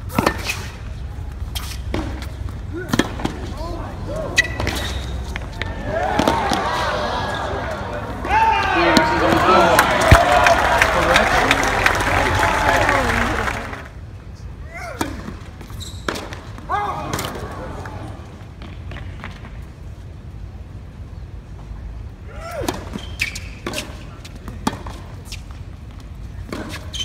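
Tennis balls are struck sharply with rackets, echoing in a large open stadium.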